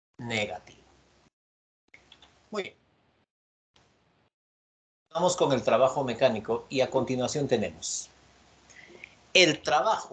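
A man lectures over an online call, speaking with animation in short bursts.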